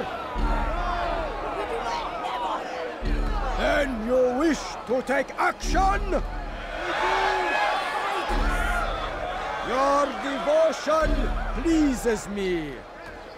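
A man speaks loudly and forcefully, addressing a crowd.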